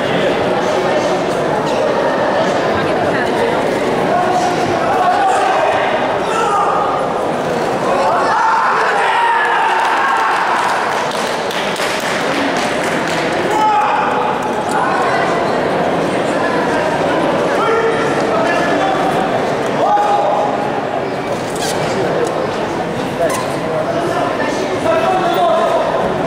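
Men shout loudly as they spar.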